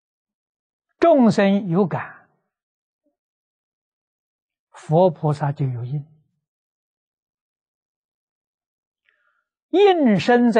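An elderly man speaks calmly through a clip-on microphone, in short phrases with long pauses.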